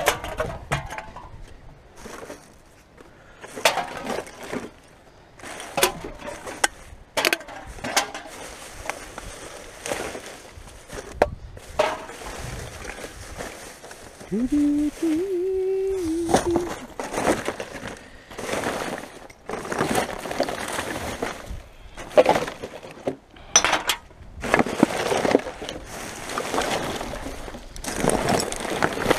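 Plastic bags and wrappers rustle and crinkle as gloved hands dig through rubbish.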